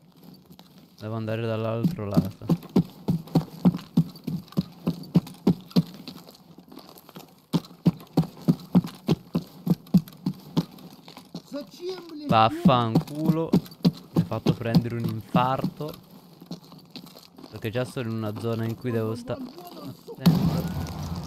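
Footsteps crunch steadily on gravel and concrete.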